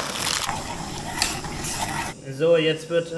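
A spoon stirs and scrapes in a pot.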